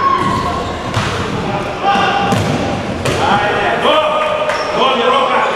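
A ball is kicked with sharp thuds that echo through a large hall.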